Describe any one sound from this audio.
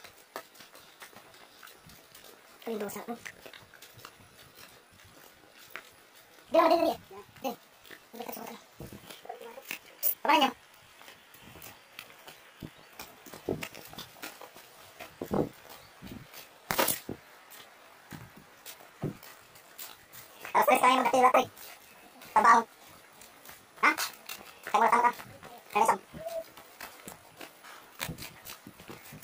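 Footsteps crunch on a dirt path strewn with dry leaves.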